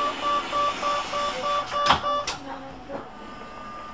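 Tram doors slide shut with a thud.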